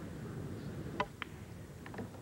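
A cue stick sharply strikes a billiard ball.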